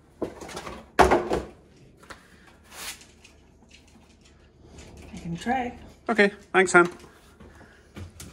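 A plastic panel clatters as a woman handles it.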